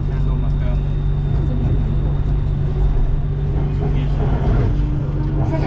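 Another train rushes past close by with a loud whoosh.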